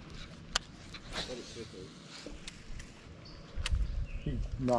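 A fishing reel clicks as a line is wound in.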